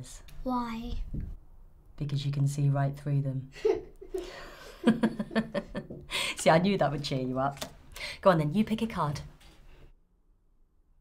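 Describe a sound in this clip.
A woman speaks quietly and with emotion, close by.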